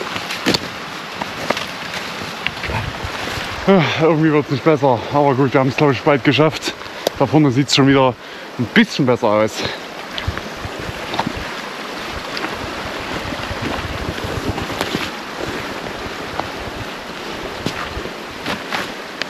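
Footsteps crunch in snow and snap twigs.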